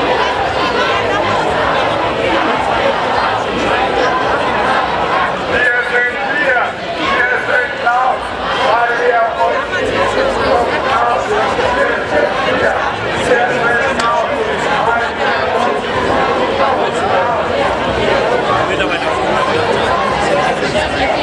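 A large crowd of men and women chatters and talks all around, outdoors.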